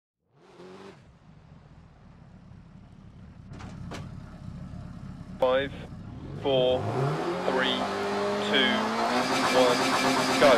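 A rally car engine idles and then revs hard.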